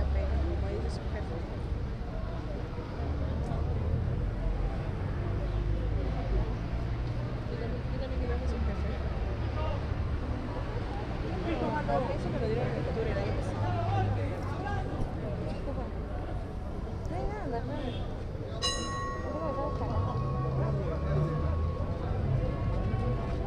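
A large crowd murmurs and chatters nearby, in an echoing space.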